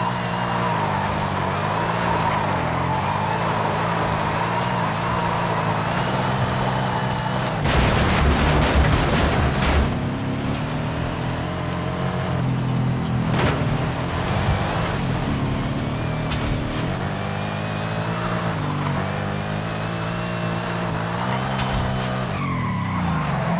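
A car engine roars and revs steadily.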